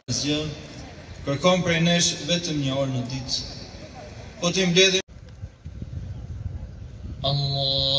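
A man chants a prayer through a loudspeaker outdoors.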